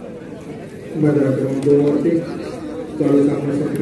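A man speaks loudly close by.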